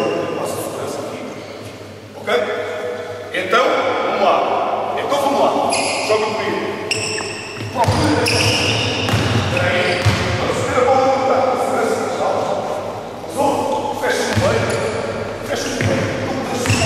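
A crowd of young people chatters and cheers in a large echoing gym.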